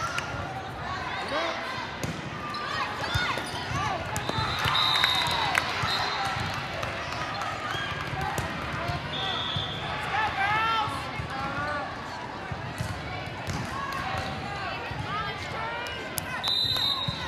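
Young women call out and cheer.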